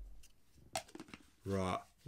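A man sips from a cup.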